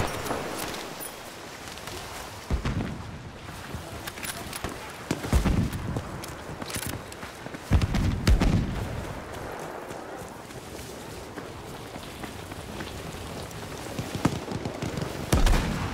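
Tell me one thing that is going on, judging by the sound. Gunshots and explosions boom and crack at intervals.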